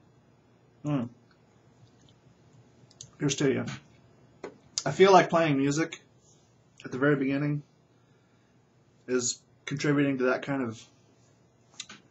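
A man talks in short bursts, close up and calmly.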